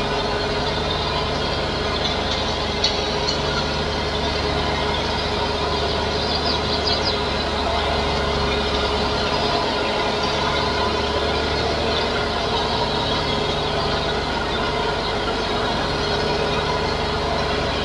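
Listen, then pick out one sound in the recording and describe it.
A mower clatters as it cuts grass.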